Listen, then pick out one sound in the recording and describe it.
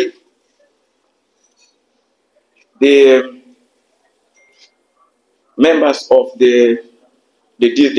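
A man speaks slowly and deliberately into a microphone, with pauses between phrases.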